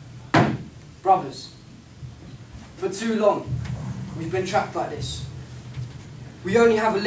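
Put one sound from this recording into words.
A young man speaks nearby.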